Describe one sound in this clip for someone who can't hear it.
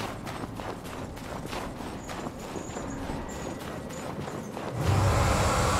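Heavy footsteps thud on stone ground.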